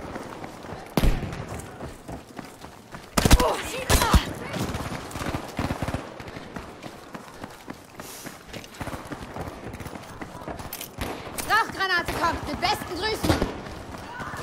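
Gunshots and blasts crack loudly.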